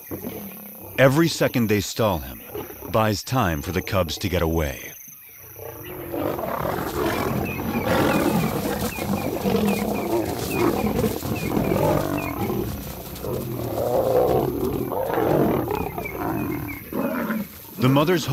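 Lions snarl and growl loudly close by.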